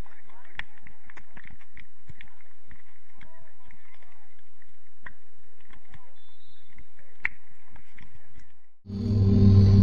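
Young players call out and chatter across an open field.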